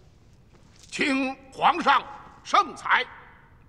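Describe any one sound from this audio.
A man speaks up in a pleading tone.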